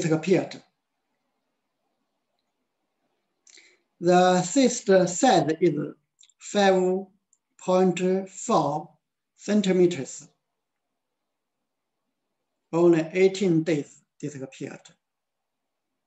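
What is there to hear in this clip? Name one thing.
An elderly woman speaks in short bursts, close by, with pauses between phrases.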